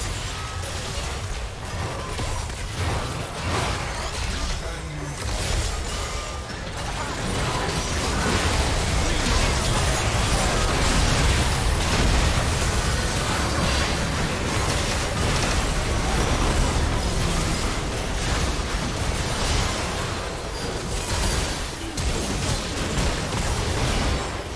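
Spell effects and blasts crackle and boom in a game fight.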